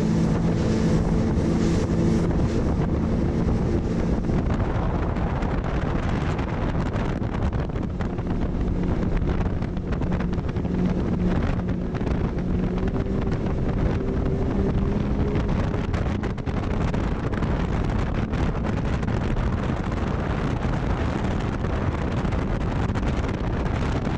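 Water splashes and slaps against a boat's hull.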